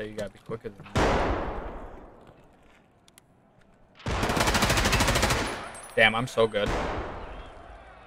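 Gunfire rattles in bursts and echoes.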